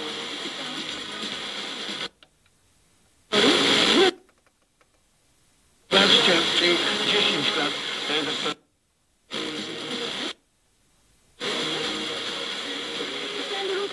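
An FM tuner plays a distant station through static.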